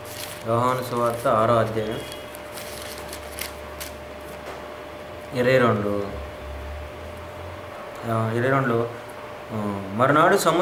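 A man speaks calmly and slowly in short phrases, close by, reading out.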